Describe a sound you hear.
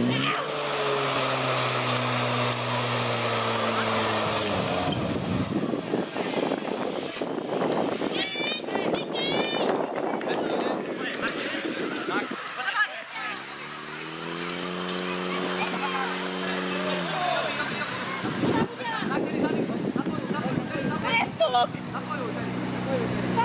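A portable pump engine roars, its pitch rising and falling as it revs.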